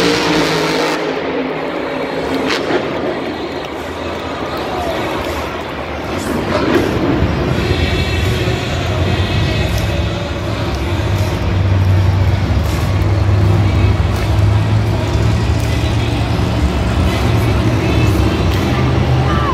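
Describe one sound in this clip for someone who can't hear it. A monster truck engine roars and revs.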